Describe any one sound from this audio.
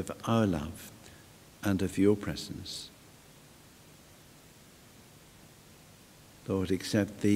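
A man speaks calmly into a microphone in a large echoing hall, with pauses.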